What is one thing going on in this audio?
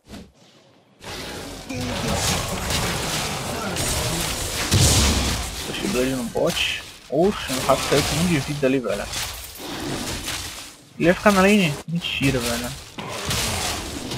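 Game combat effects clash and whoosh as a character fights a monster.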